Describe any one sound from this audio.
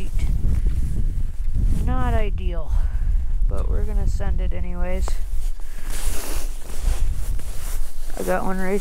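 Wind buffets the microphone with a steady low rumble outdoors.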